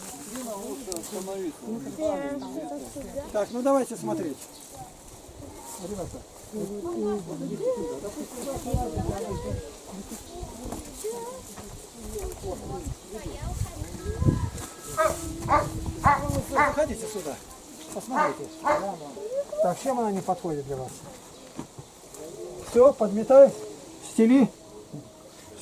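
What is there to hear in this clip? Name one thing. Men talk calmly close by, outdoors.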